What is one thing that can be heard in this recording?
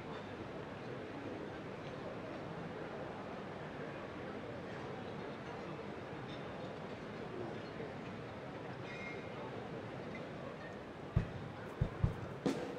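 An orchestra plays softly in a large echoing hall.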